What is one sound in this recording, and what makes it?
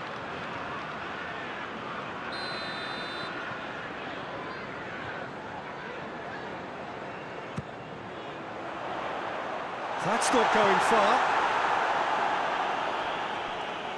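A large stadium crowd murmurs steadily and then swells into a loud roar.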